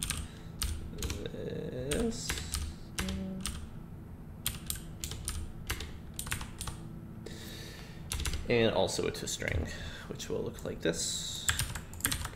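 Keys click quickly on a keyboard.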